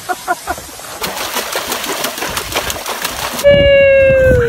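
A dog thrashes and splashes in a tub of water.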